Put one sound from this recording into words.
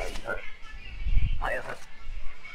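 A stamp thumps down on paper.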